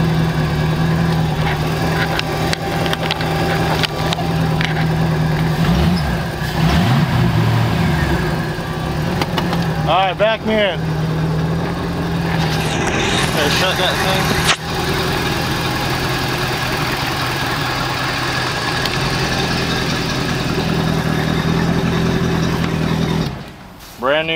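A boat engine idles with a steady low rumble.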